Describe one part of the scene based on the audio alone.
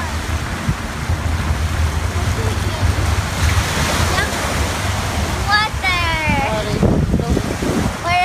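Small waves wash gently onto the shore.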